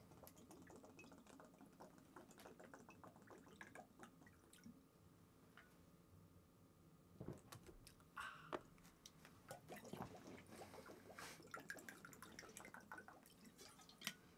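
A man drinks from a can with loud gulps.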